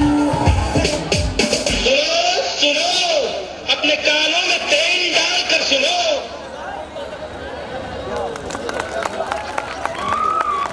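Loud music plays through speakers.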